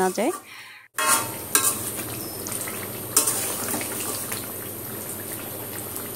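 A thick sauce sizzles and bubbles in a pot.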